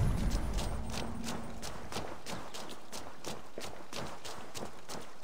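Footsteps crunch quickly and steadily on gravel.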